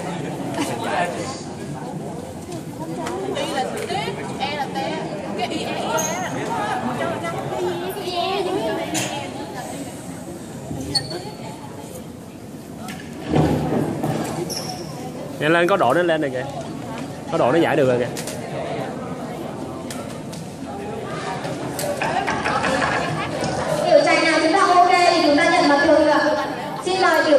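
A group of teenagers chatter and talk excitedly close by.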